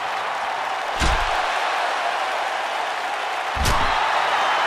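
A stick strikes a body with loud, heavy thuds.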